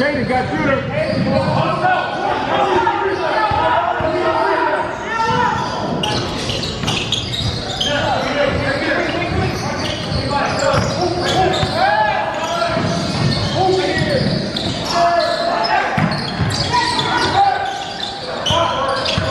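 Young players shout and call out in a large echoing gym.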